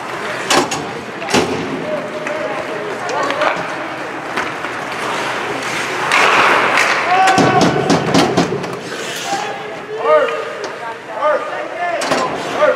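Skates scrape and hiss across ice in an echoing rink.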